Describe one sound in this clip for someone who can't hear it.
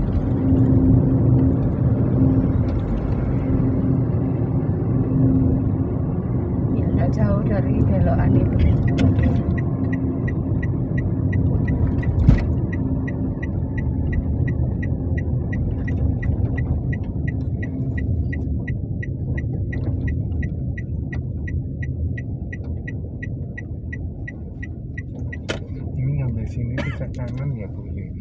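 Motorbike engines buzz close by in traffic.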